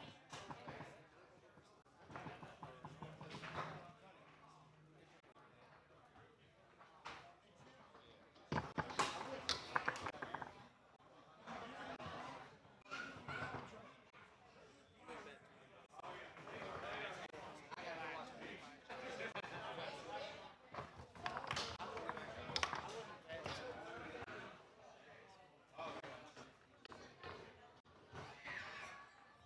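A table football ball cracks sharply against the rods and walls.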